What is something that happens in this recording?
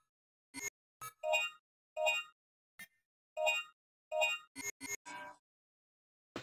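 Short electronic menu beeps chime one after another.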